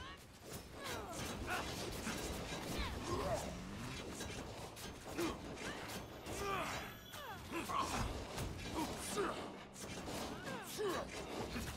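Weapons clash and strike in quick, heavy blows.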